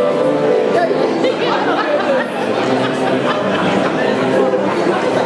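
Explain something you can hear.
A piano plays along.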